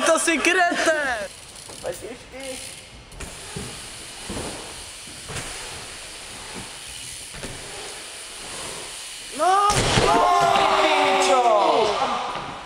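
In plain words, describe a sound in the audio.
A bike clatters as a rider falls on the ramp.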